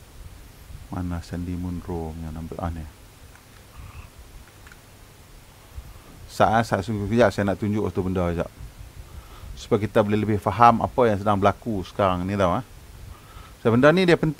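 A middle-aged man speaks calmly into a headset microphone, heard through an online stream.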